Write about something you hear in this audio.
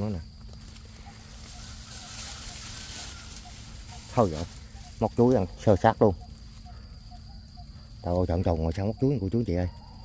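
Dry grass rustles as it is pushed aside by hand.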